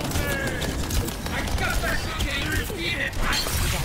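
A rifle fires rapid energy shots.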